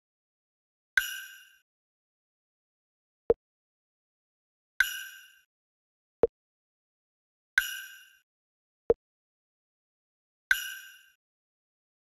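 A short bright chime rings each time a track tile drops into place.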